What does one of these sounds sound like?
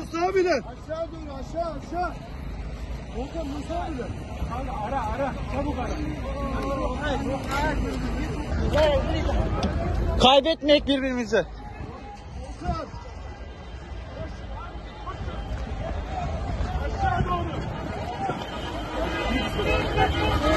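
A crowd of men shout and talk excitedly close by, outdoors.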